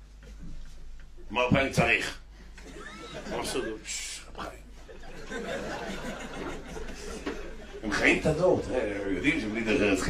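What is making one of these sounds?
A middle-aged man speaks with animation into a microphone in an echoing room.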